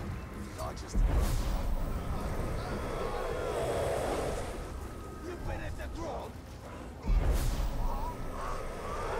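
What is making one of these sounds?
Heavy blows land with deep, booming thuds.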